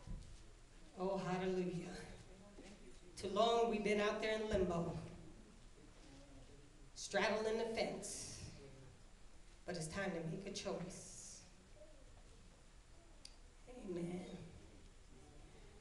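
A woman sings slowly into a microphone, heard through loudspeakers in a large echoing room.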